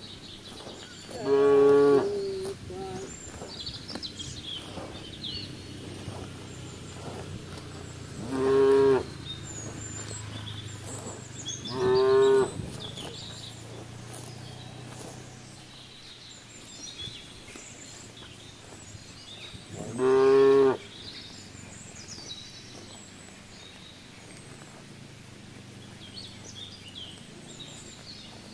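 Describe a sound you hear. Cows tear and munch grass close by.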